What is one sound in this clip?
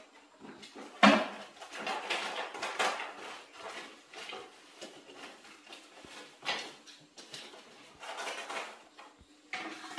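Bamboo sticks clatter and knock together on a hard floor.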